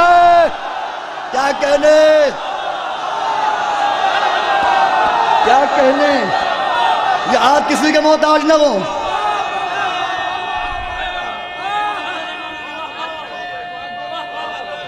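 A crowd of men shouts and cheers loudly in a large hall.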